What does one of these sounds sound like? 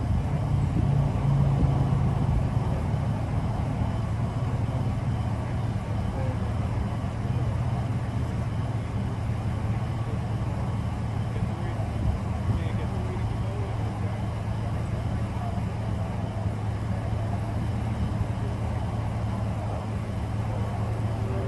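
A truck engine idles steadily nearby.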